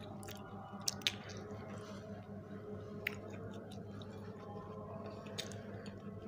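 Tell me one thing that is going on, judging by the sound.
A man bites into crunchy pastry and chews noisily up close.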